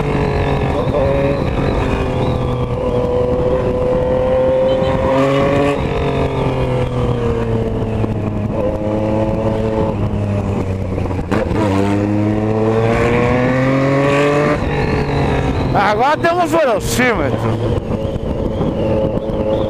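A motorcycle engine hums close by, rising and falling in pitch as it speeds up and slows down.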